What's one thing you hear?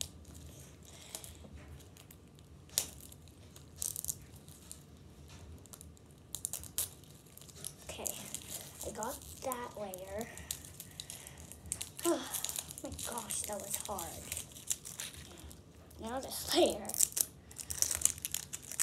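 Plastic wrapping crinkles and tears.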